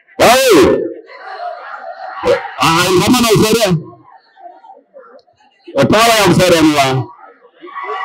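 An elderly man shouts forcefully into a microphone, booming through loudspeakers in a large echoing hall.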